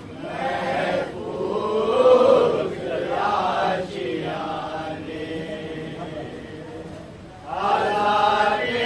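A man recites loudly in a chanting voice.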